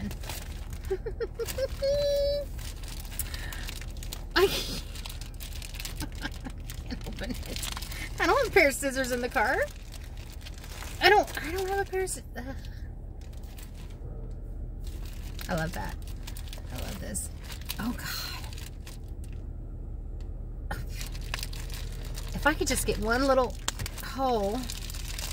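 A plastic bag crinkles in a woman's hands.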